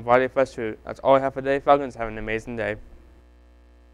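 A young man speaks clearly into a microphone, close by.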